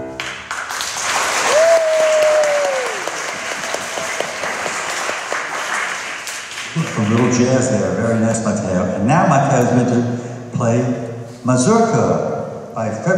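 A piano plays in an echoing hall.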